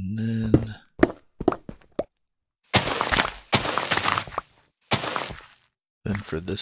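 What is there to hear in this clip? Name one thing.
Blocks crunch and crumble as they are dug out in quick strokes.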